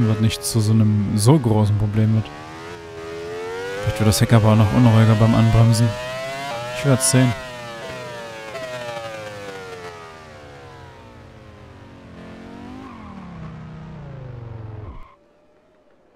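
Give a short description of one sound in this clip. A racing car engine roars loudly, revving up and dropping through gear changes, then winds down.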